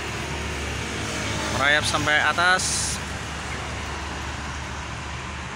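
A truck engine rumbles steadily on a road outdoors.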